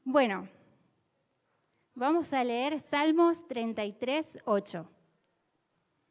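A young woman sings into a microphone over a loudspeaker.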